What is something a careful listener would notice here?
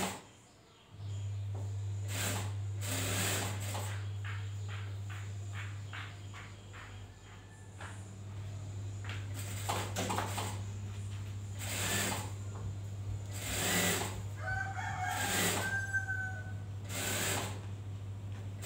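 A sewing machine hums steadily as it stitches.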